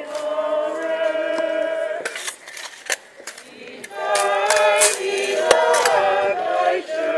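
Shovels scrape and scoop sand.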